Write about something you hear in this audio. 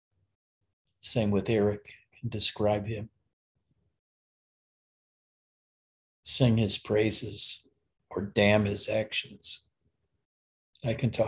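An elderly man speaks calmly, close to the microphone, with long pauses.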